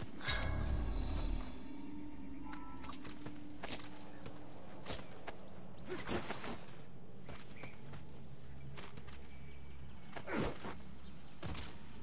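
Footsteps crunch on dry, stony ground.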